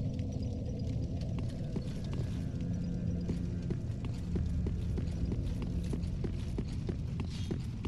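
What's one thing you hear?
Armoured footsteps thud on stone at a run.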